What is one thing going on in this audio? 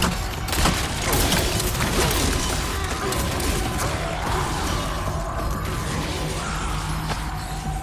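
A monstrous creature snarls and roars.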